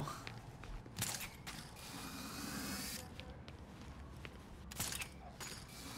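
A heavy thud of feet landing.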